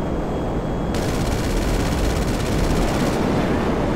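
Missiles whoosh as they fire.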